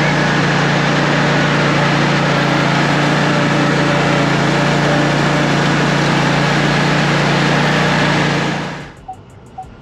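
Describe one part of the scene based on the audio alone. A mower engine drones loudly and steadily, then cuts off.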